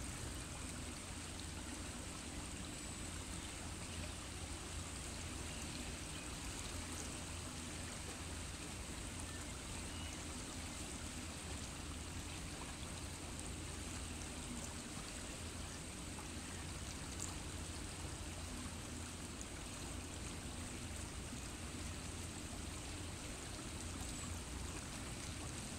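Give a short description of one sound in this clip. Water ripples gently over stones in a shallow river.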